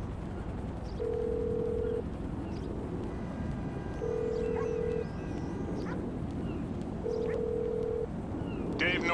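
A phone call rings out in steady repeated tones through an earpiece.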